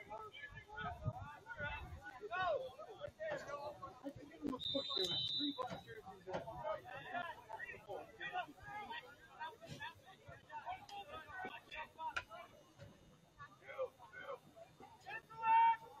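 Players and spectators shout and call out across an open field.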